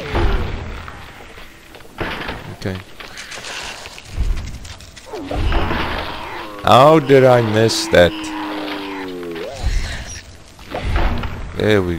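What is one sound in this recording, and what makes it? Heavy blows thud against giant insects.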